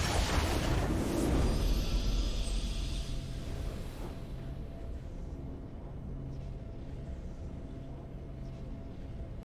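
A game's victory fanfare plays.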